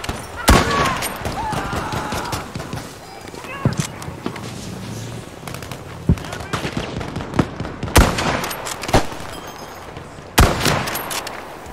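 Gunfire crackles nearby.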